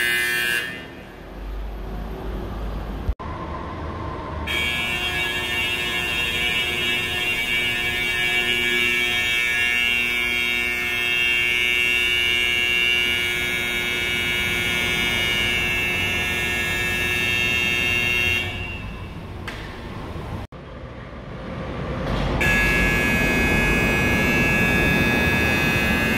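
An electronic alarm sounds loudly with steady high tones in an echoing space.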